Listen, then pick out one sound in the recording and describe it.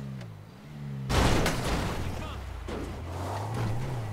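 A car crashes and tumbles over rough ground.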